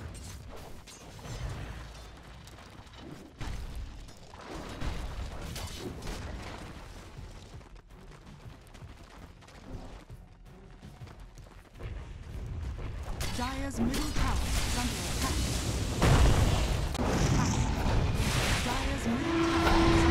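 Fantasy battle sound effects clash, zap and burst.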